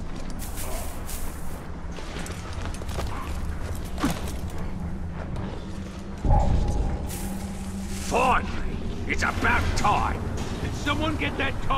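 Footsteps scuff on stone and gravel.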